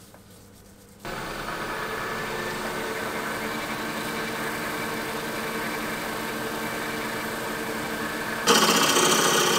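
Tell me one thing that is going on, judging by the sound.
Sandpaper rubs and hisses against spinning wood.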